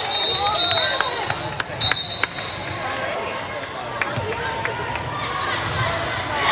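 Shoes squeak sharply on the gym floor.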